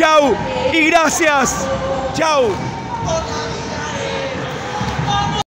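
A middle-aged man shouts excitedly close by.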